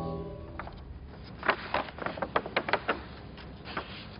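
Stiff paper pages rustle as they are turned.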